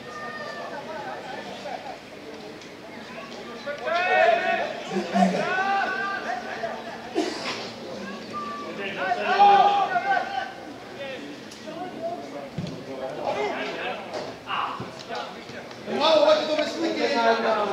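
Men shout to each other across an open field outdoors.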